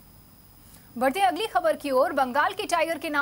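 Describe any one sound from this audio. A young woman reads out the news calmly through a microphone.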